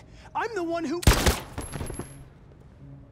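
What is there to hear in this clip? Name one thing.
A gunshot rings out loudly and echoes.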